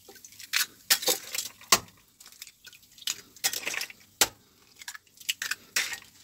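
Eggshells crack against the rim of a bowl.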